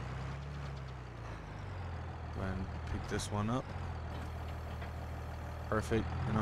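A tractor engine rumbles steadily.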